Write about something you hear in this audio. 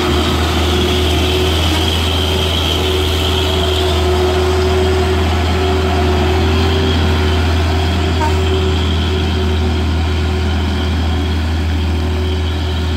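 A heavy truck engine rumbles steadily up close.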